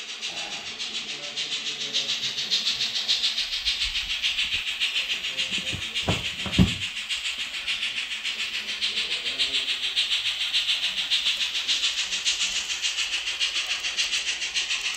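A model train clicks rhythmically along the tracks.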